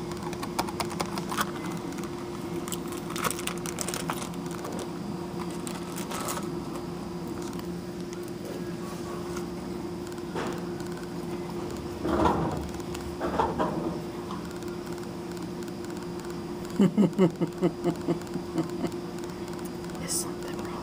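A hydraulic elevator hums steadily from inside the cab as it travels.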